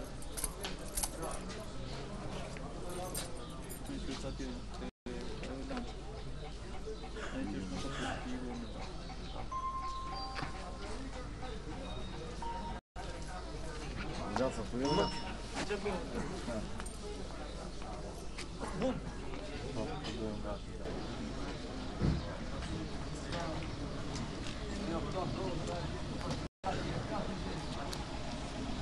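A crowd of men talks in low voices outdoors.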